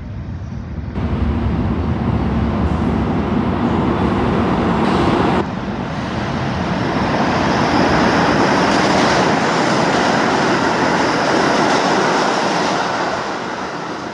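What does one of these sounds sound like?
A subway train rumbles and roars past on the far track, echoing loudly.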